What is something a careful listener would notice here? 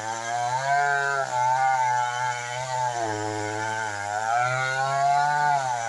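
A chainsaw engine whines loudly and revs up and down while cutting wood.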